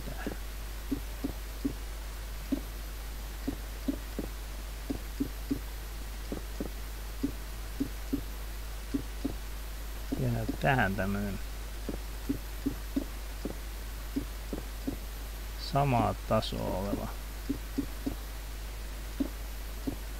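Stone blocks crunch repeatedly as they are dug out.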